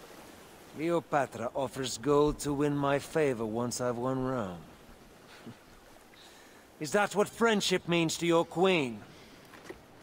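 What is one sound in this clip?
A middle-aged man speaks calmly and with emphasis, close by.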